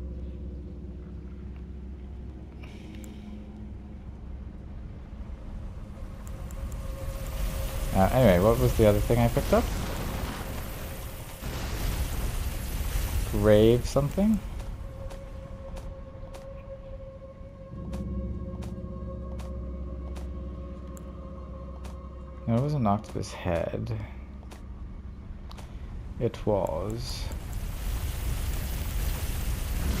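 Soft menu clicks tick as selections change.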